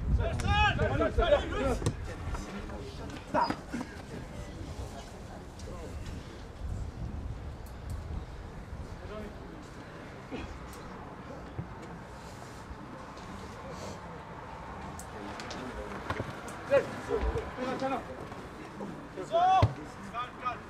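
Young men shout to each other from a distance outdoors.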